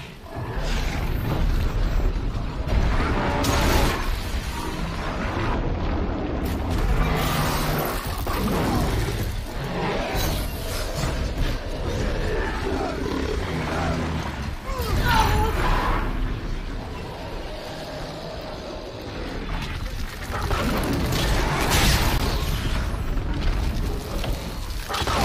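Loud blasts and crashes ring out in a fight with machines.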